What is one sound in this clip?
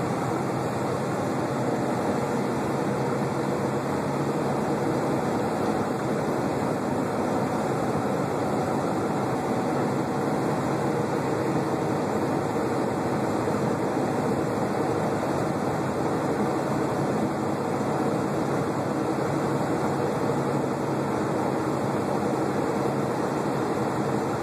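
Tyres roll steadily on asphalt road.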